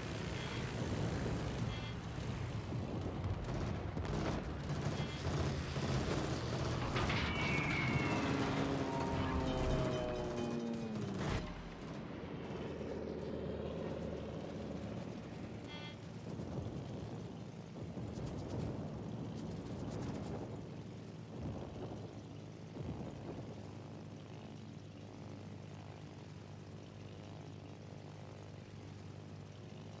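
Aircraft engines drone steadily overhead.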